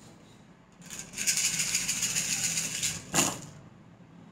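Small hard objects rattle as they are shaken in hands.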